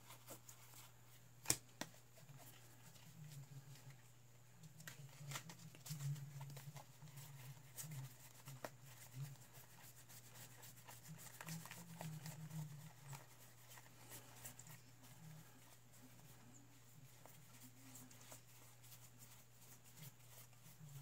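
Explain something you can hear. Playing cards slide and flick against each other as they are sorted by hand.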